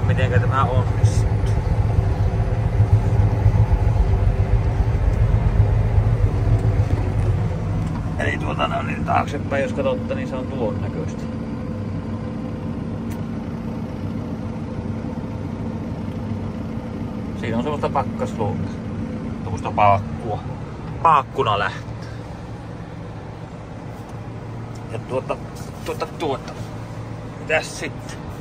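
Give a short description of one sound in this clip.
A heavy vehicle's engine rumbles steadily, loudest at first.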